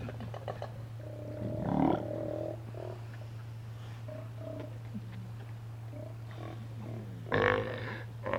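Sea lions bark and roar nearby.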